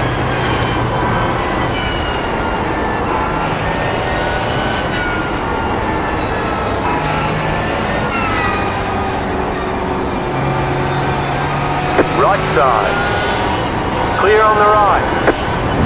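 A racing car engine roars loudly at high revs, its pitch rising and dropping with gear changes.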